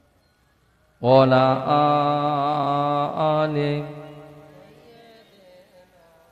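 A man sings out a long, loud call through a microphone and loudspeakers, and the sound echoes away afterwards.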